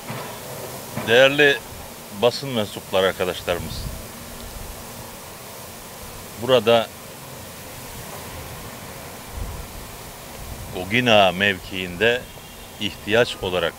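An elderly man speaks animatedly into a close microphone outdoors.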